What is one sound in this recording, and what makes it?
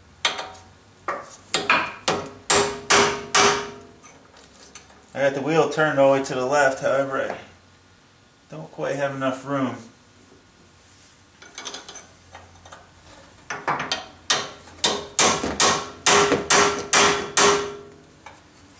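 A hammer strikes a metal punch in sharp, ringing blows.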